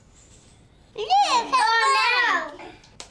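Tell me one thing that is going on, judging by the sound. A little girl laughs and chatters excitedly close by.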